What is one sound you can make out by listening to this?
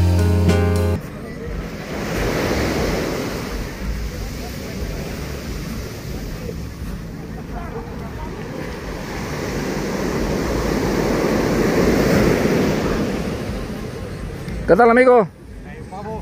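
Waves wash onto the shore in a steady, swelling rush.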